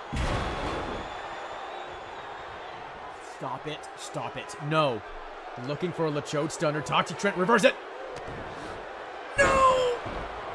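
A crowd cheers in a large arena.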